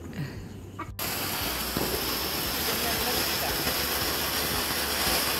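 A firework fountain hisses and roars loudly close by.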